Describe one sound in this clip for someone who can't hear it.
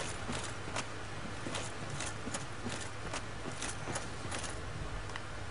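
Armoured footsteps clink softly on grass.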